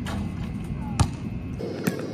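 A basketball bangs against a backboard.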